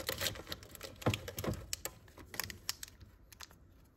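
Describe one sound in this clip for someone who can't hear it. Candy wrappers rustle and crinkle as a hand picks through a plastic container.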